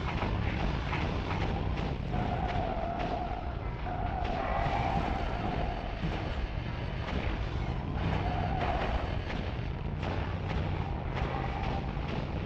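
Flames whoosh and crackle.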